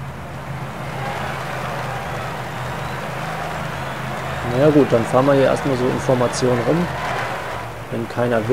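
A roadside crowd cheers and claps.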